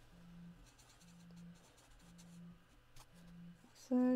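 A felt-tip marker rubs softly across paper.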